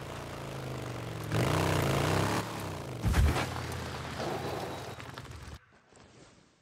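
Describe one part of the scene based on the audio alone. A motorcycle engine revs and roars as it rides.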